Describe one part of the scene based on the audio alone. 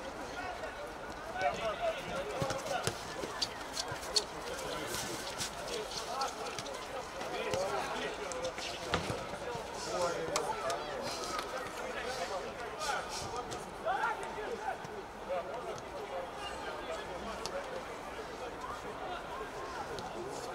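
A football thuds as it is kicked.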